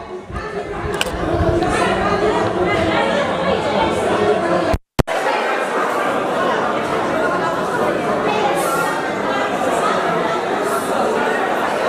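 A crowd of women chatters and murmurs loudly.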